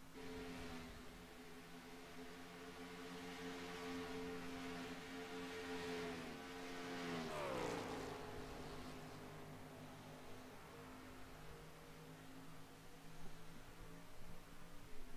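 Race car engines roar steadily as cars speed around a track.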